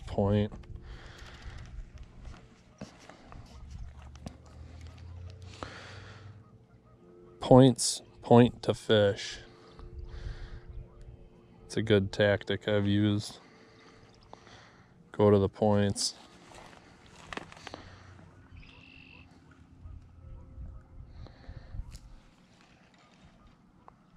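A fishing reel whirs and clicks as its handle is turned.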